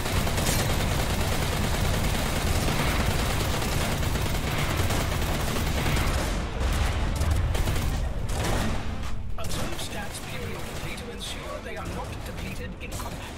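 Spaceship engines roar with a deep, steady rumble.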